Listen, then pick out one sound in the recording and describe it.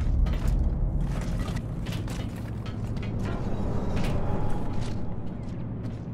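Heavy boots thud on a metal floor.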